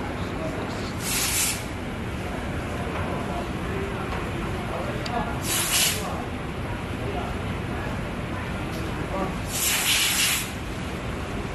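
Plastic pieces rustle and scrape as hands fit them together.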